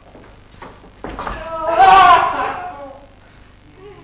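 A woman cries out excitedly in a large hall.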